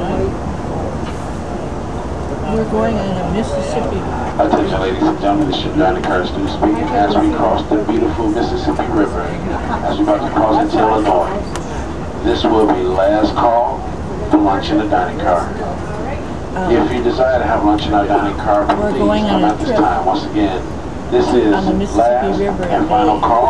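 A train rumbles steadily across a bridge.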